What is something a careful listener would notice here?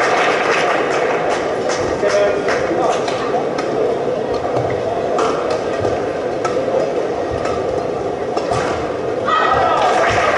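Rackets strike a shuttlecock in a rally.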